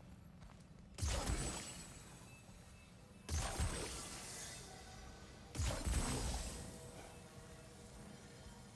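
A magical orb hums and crackles.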